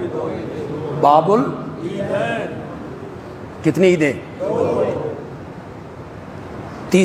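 A middle-aged man speaks forcefully into a microphone in an echoing hall.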